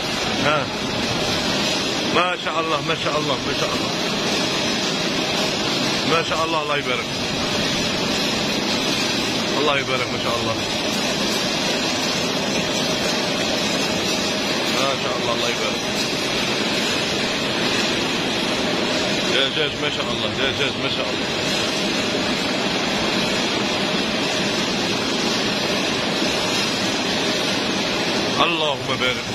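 A conveyor chain clatters and rattles steadily.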